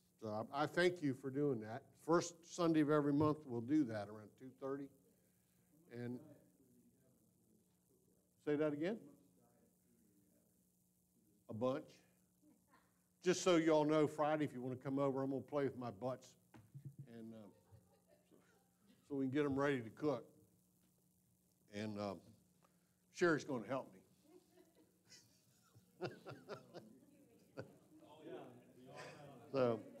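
A man speaks calmly through a microphone in a large echoing hall, with pauses.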